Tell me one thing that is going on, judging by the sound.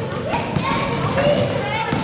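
A ball thuds against a backboard and rim.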